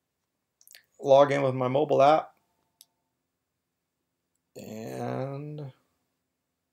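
A middle-aged man speaks calmly and close by, heard through a computer microphone.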